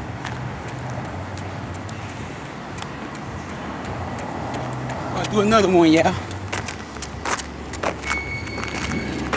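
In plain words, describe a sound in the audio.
Footsteps slap quickly on pavement.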